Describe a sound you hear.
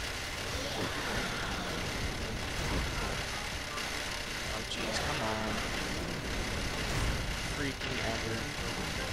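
Video game sound effects chime and whoosh over a steady background of music.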